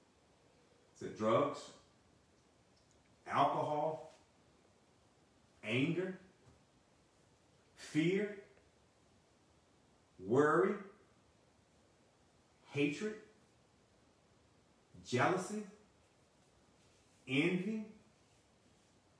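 A middle-aged man speaks close to the microphone in short, separate phrases with pauses between them.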